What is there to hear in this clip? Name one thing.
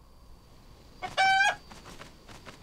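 A bird gives a short, loud squawk.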